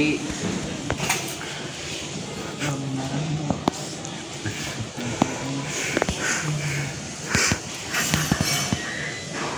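Metal bars of a gate rattle and clank.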